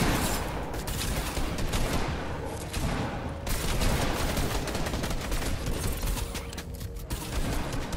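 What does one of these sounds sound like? Video game building pieces clatter and snap into place quickly.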